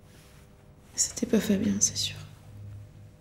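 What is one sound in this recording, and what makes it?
A young woman speaks quietly close by.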